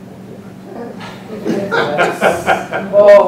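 Several middle-aged men laugh heartily.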